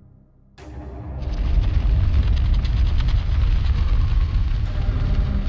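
A heavy stone door grinds and rumbles as it slides open.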